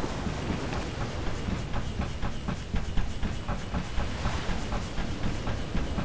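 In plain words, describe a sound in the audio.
Footsteps clank on metal ladder rungs in a steady rhythm.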